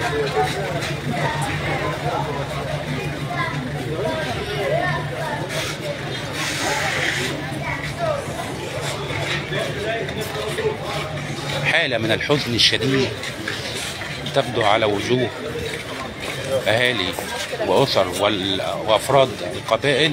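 A crowd of men and women talks and shouts loudly outdoors.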